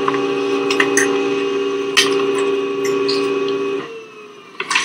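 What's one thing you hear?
A printer whirs and hums steadily as it feeds paper.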